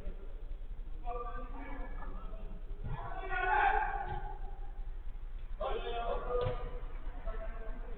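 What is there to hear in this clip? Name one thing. Men shout to each other across an echoing pitch.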